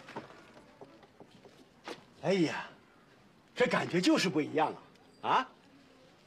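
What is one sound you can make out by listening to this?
A car door opens and closes.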